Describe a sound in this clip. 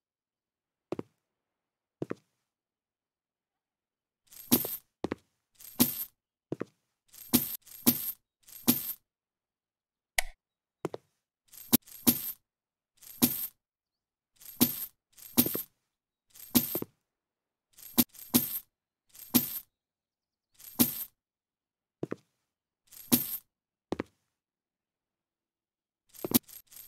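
Footsteps thud across a wooden floor at a walking pace.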